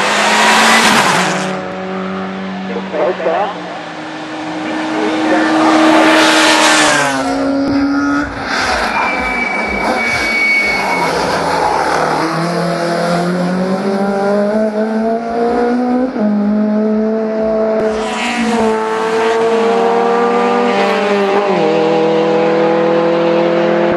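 Racing car engines roar loudly as they speed past, revving up and down through the gears.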